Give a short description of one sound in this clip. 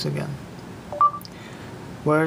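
A phone gives a short electronic chime.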